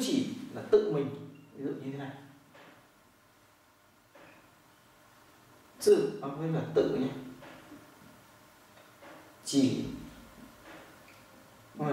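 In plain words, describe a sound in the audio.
A man speaks clearly and calmly, close by, in short bursts.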